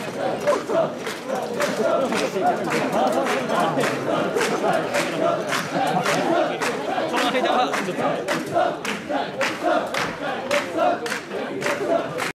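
A crowd of men chants loudly in rhythm close by.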